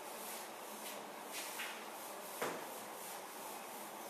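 A duster wipes across a chalkboard with a soft scrubbing.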